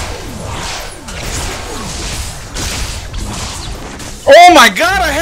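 Electronic combat sound effects whoosh and clash.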